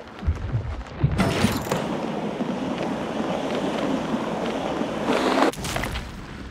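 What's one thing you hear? Skateboard wheels roll and rumble over wooden boards.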